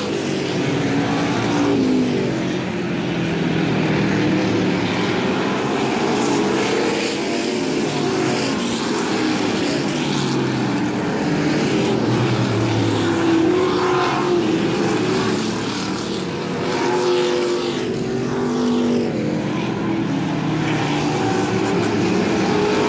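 Race car engines roar loudly as the cars race past.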